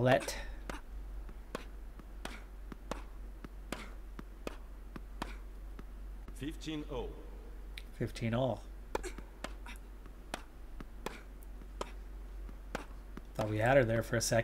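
A tennis ball is struck back and forth with sharp, regular thwacks.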